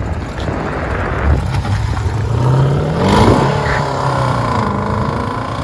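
A car exhaust rumbles loudly up close.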